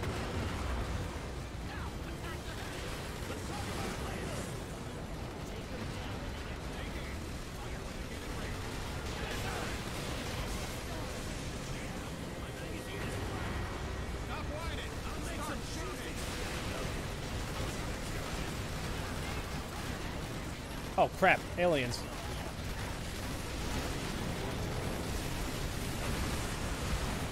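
Gunfire and explosions rumble steadily throughout a battle.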